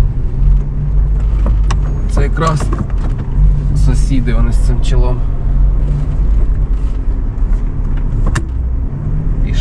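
Car tyres bump and splash over a rough, puddled dirt road.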